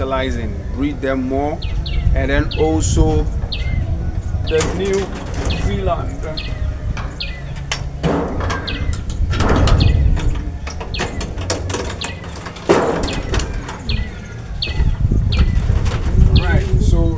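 A young man speaks calmly and clearly close by.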